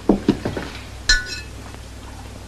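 A china lid clinks against a teapot.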